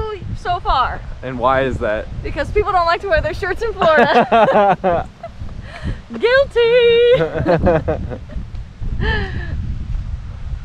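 Young women talk and laugh with animation close by.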